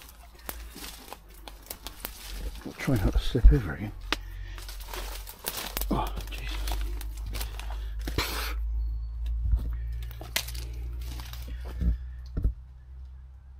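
Footsteps crunch and rustle through dry undergrowth close by.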